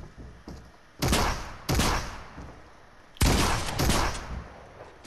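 A shotgun fires loud, sharp blasts.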